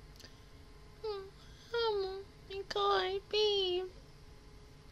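A young woman speaks briefly and animatedly, close to a microphone.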